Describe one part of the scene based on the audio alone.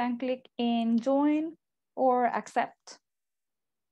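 A young woman speaks calmly over an online call.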